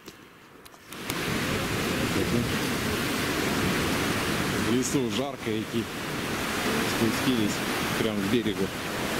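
Small waves wash and splash onto a sandy shore.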